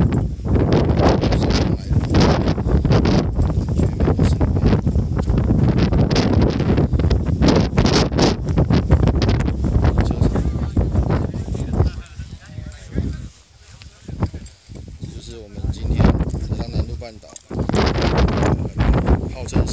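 Strong wind buffets loudly outdoors, gusting and easing.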